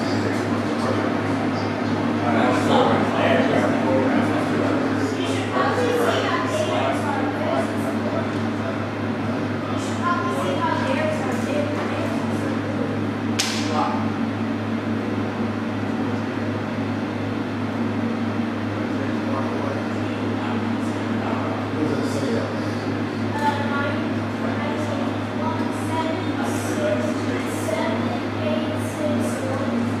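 Adults talk quietly in the background of an indoor room.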